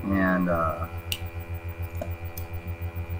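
Metal gun parts click together as they are handled.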